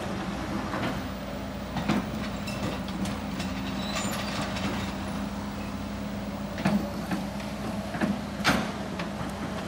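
Rocks clatter and knock as an excavator bucket digs.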